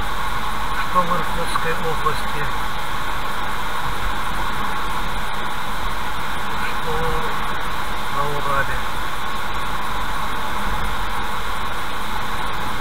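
Tyres hiss steadily on a wet road.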